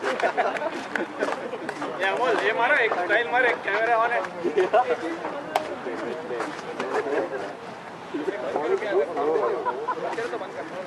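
Several men call out to each other outdoors.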